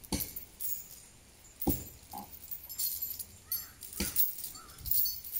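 An elephant walks with heavy, dull footsteps on grass.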